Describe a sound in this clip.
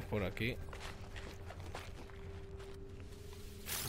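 Footsteps tread softly on the ground.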